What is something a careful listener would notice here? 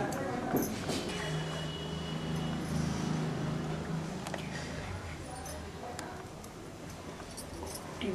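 A young woman sobs quietly, close by.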